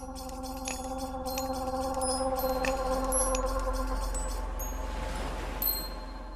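Waves wash gently onto a sandy shore.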